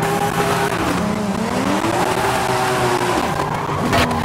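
Tyres screech as a car drifts and skids.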